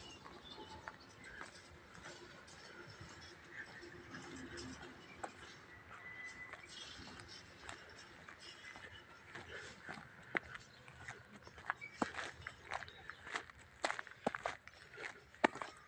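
A train rumbles slowly away along the tracks in the distance.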